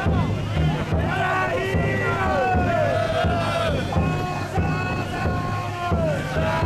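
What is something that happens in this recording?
A crowd of men chant and shout loudly outdoors.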